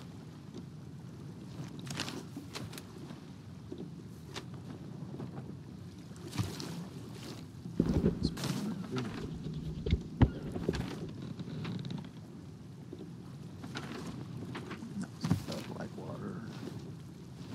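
Waves wash steadily against a wooden ship.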